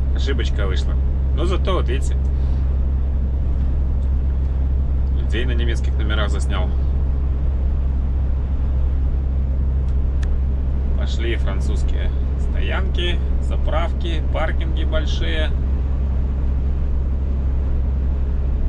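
A truck engine drones steadily while driving along a highway.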